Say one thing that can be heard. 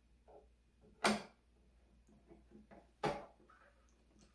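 A plastic housing clunks as it is lifted off a small appliance.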